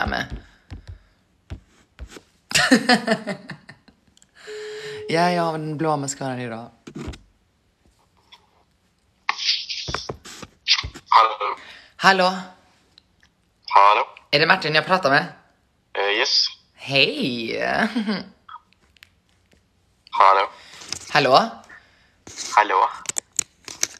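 A young woman talks with animation close to a phone microphone, pausing now and then.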